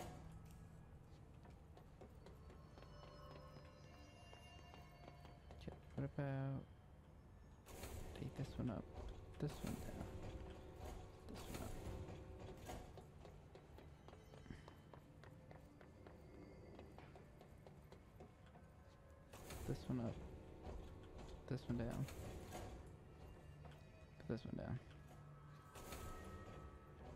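Footsteps thud on metal grating as a woman runs.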